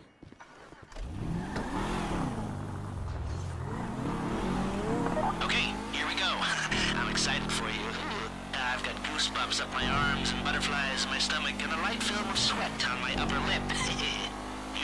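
A sports car engine revs and roars as it accelerates.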